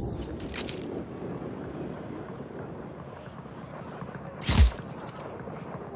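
A parachute flaps in the wind.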